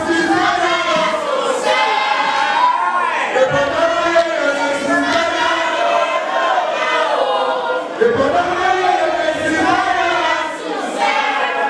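A young man raps loudly into a microphone through loudspeakers.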